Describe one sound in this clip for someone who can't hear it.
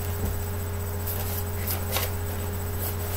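A sheet of paper rustles and crinkles close by.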